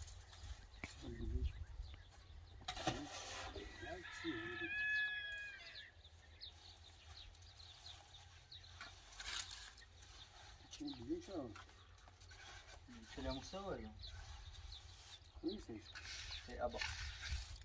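A trowel scrapes wet mortar.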